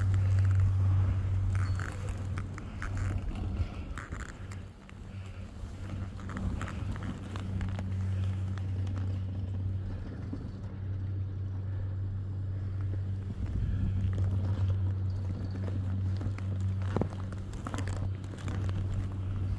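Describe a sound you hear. Skis hiss and scrape over soft snow.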